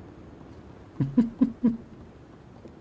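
A man laughs briefly.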